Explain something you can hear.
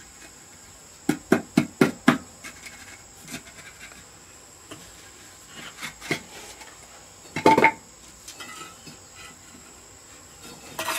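Sand scrapes and rustles under a trowel.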